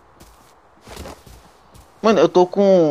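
Footsteps thud softly on dirt and grass.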